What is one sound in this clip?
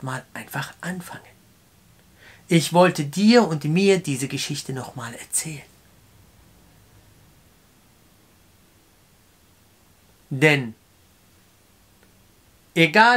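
A man speaks calmly and close up, with pauses.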